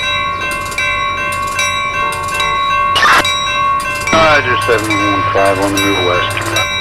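A railway crossing bell rings in a steady repeating rhythm.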